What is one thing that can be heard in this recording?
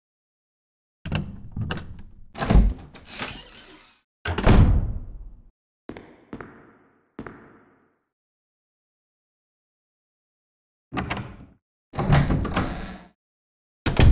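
A heavy wooden door unlatches and creaks open.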